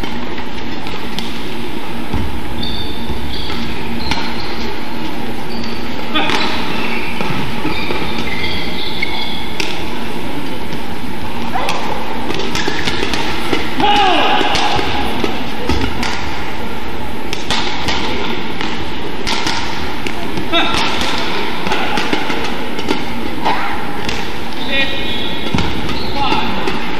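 Sports shoes squeak on a court floor.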